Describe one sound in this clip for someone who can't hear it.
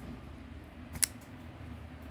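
A folding knife blade snaps open with a sharp click.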